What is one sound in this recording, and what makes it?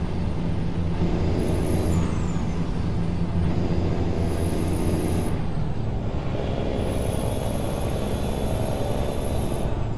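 A truck engine rumbles steadily while driving on a highway.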